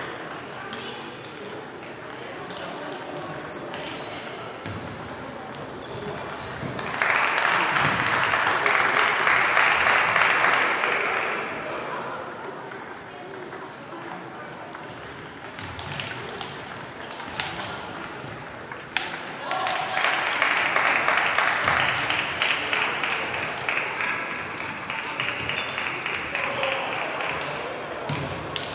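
Table tennis balls click and bounce on tables in a large echoing hall.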